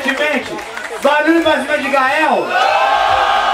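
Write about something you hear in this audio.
A man raps loudly into a microphone over a loudspeaker.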